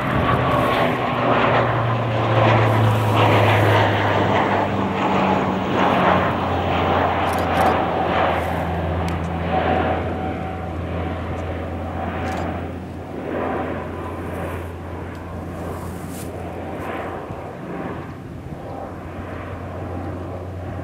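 A propeller plane drones loudly overhead, its engine roar slowly fading as it climbs away.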